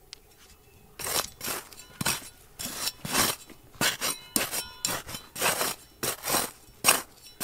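A metal trowel scrapes and digs into dry, gritty soil.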